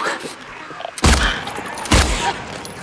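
Heavy blows thud close by.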